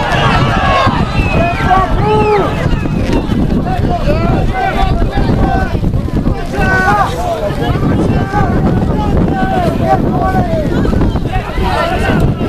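Young men shout and call to one another across an open field.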